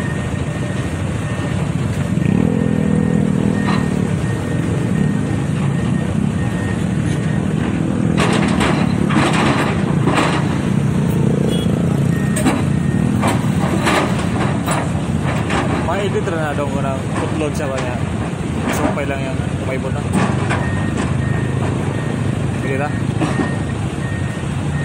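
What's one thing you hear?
Excavator engines rumble steadily nearby.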